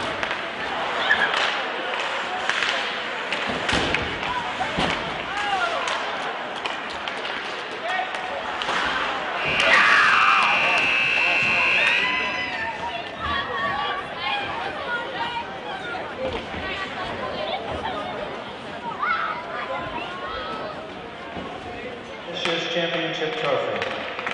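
A crowd of spectators cheers and chatters.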